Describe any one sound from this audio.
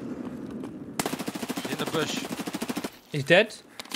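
Rapid automatic gunfire rattles.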